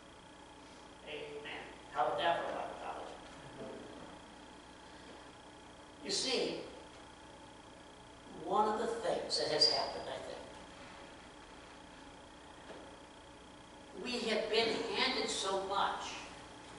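A middle-aged man preaches with animation in a room with some echo, pausing between phrases.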